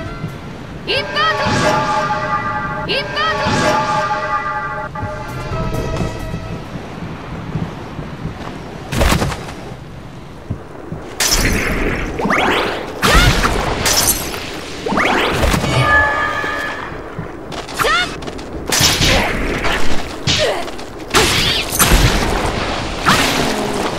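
Game music plays throughout.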